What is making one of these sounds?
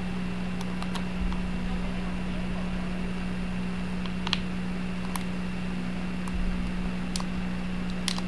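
Footsteps tap quickly across a floor.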